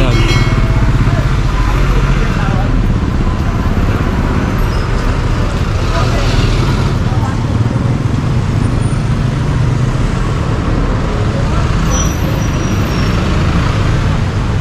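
A motorcycle engine idles with a steady, close rumble.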